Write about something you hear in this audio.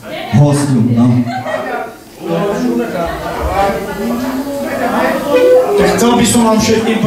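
A man sings loudly through a microphone over loudspeakers.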